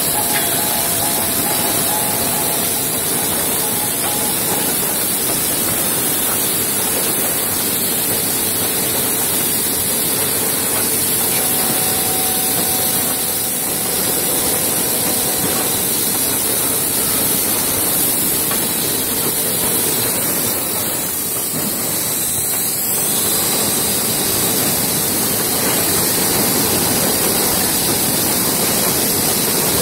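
Industrial machinery hums and rattles steadily.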